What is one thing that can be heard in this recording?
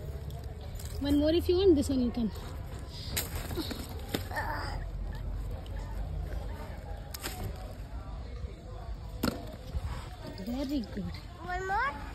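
A young girl speaks close by.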